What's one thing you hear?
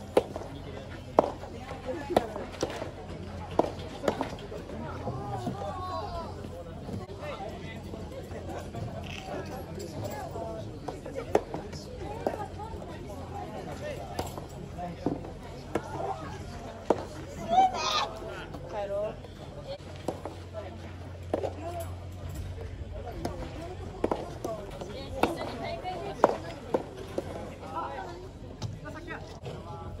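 Players' shoes scuff and patter on a clay court.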